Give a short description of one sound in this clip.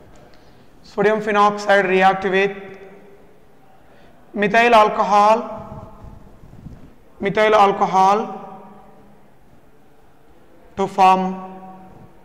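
A man speaks calmly in short phrases, close by, with pauses between them.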